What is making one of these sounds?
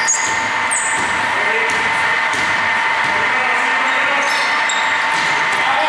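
Basketball players' sneakers squeak on a hardwood court in an echoing gym.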